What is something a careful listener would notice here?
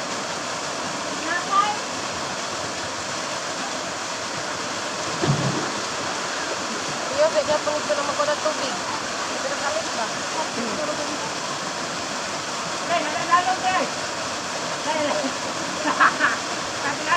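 A waterfall pours into a pool.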